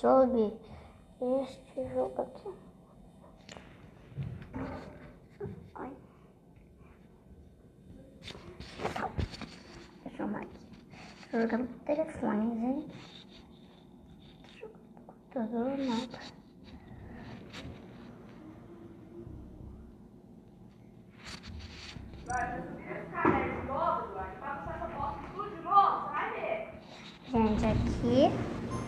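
A young boy talks with animation into a phone microphone.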